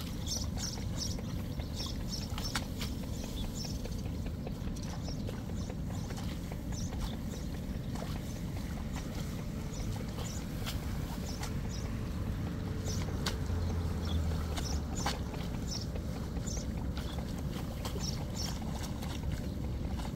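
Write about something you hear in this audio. Seedlings are pushed into wet mud with soft squelches and splashes.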